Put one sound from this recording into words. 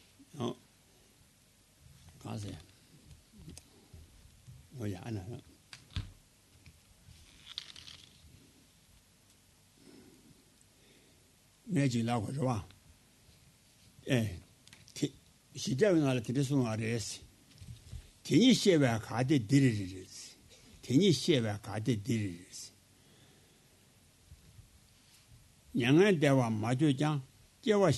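An elderly man speaks calmly into a microphone, pausing often.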